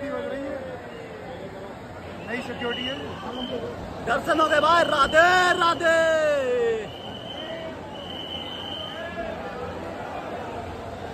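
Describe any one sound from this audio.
A crowd murmurs and chants in a large echoing hall.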